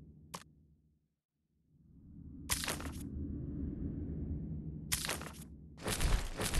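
Short menu clicks and swooshes sound.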